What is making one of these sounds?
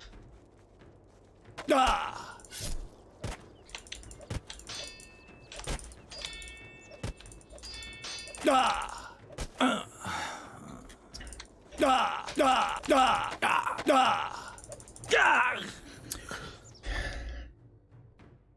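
Weapons clash and strike in quick blows.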